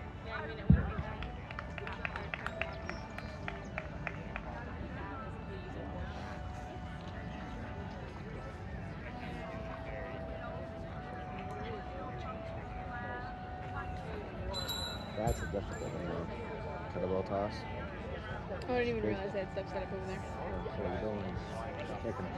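A crowd of people chatters in the open air.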